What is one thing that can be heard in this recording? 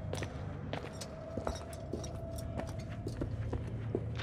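Footsteps climb creaking wooden stairs.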